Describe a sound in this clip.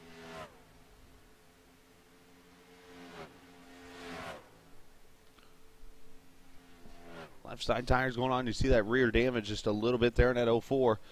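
Racing car engines drone steadily, rising and falling in pitch.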